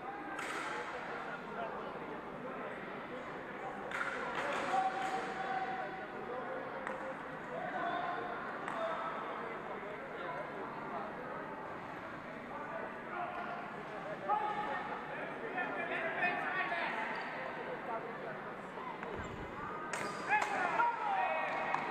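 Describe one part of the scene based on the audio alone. A crowd of men and women chatter throughout a large echoing hall.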